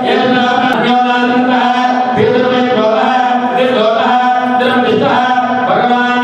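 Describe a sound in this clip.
A man chants steadily into a microphone, heard through a loudspeaker.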